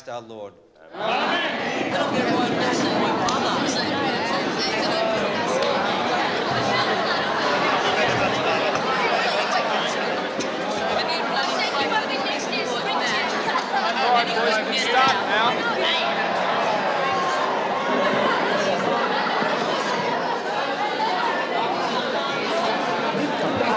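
A crowd of boys chatters loudly.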